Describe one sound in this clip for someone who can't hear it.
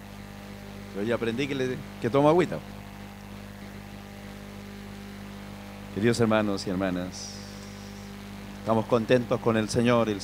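A middle-aged man speaks calmly through a microphone, in short bursts.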